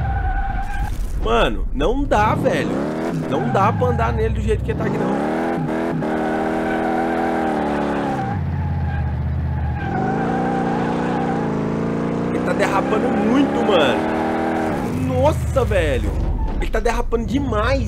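Tyres screech in short bursts as a car slides.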